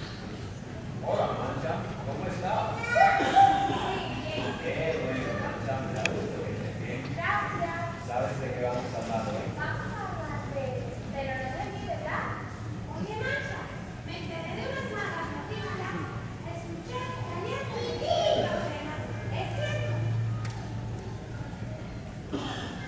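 A puppeteer speaks in animated character voices through a microphone.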